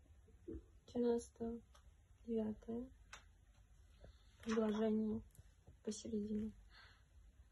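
A woman reads aloud slowly and clearly, close by.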